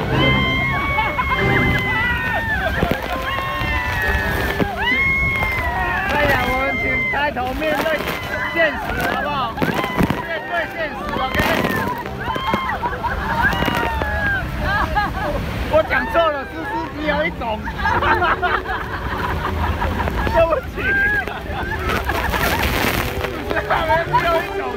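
A waterfall roars loudly nearby.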